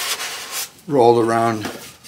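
A sanding block rubs over wood.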